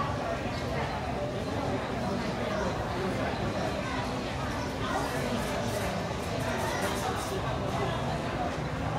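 Trays and dishes clatter lightly now and then.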